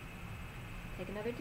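A woman speaks briefly, close by.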